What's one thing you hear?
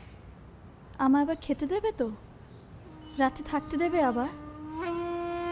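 A woman speaks pleadingly, close by.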